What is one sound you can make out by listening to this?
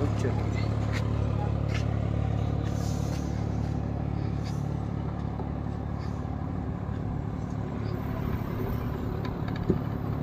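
A tractor engine rumbles steadily some distance away.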